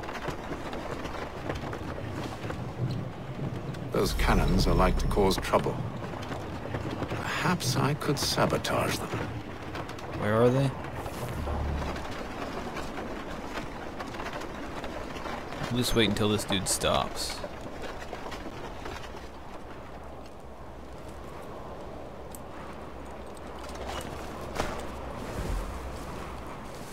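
A wooden cart rolls and creaks along.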